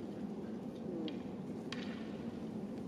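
Bamboo swords clack against each other.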